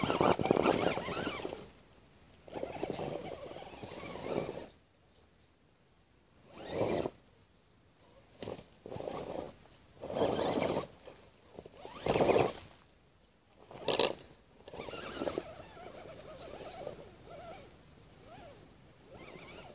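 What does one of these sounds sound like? A small electric motor whines in bursts.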